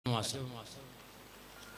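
A man speaks into a microphone in a loud, firm voice.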